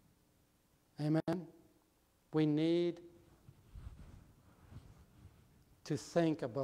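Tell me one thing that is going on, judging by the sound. A middle-aged man speaks through a microphone in an echoing room, slowly with pauses.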